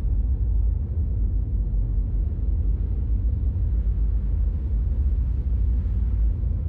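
A spaceship's engines rumble deeply and steadily.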